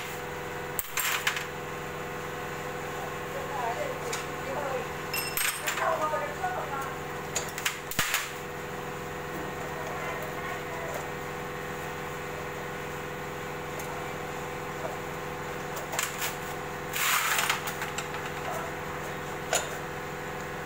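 Metal tools clink and clatter in a tray.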